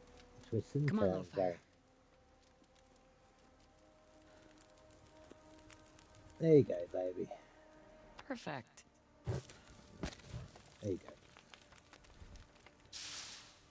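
A campfire crackles and pops.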